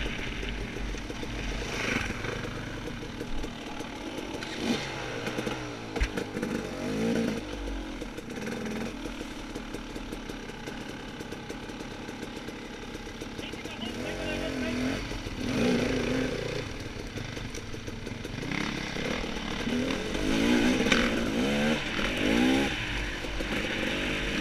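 A dirt bike engine revs and idles up close.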